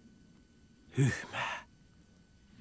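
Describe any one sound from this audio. A young man calls out briefly.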